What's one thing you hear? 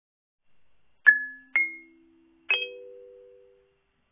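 Kalimba notes ring out one after another, each fading slowly.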